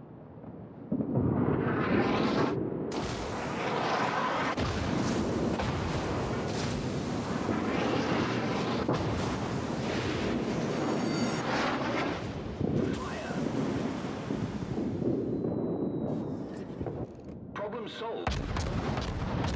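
Heavy naval guns fire with deep, rumbling booms.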